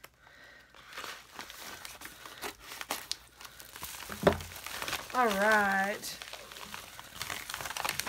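A padded plastic mailer rustles and crinkles as it is handled.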